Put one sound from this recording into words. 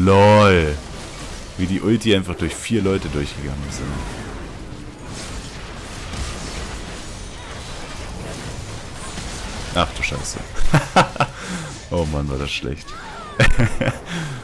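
Magic blasts and clashing hits ring out in a fast fight.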